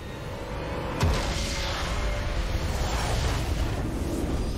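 A magic blast bursts with a sudden whoosh and a crackling roar.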